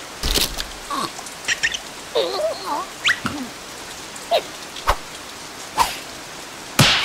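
Cartoon creatures squeak and mumble in high, silly voices.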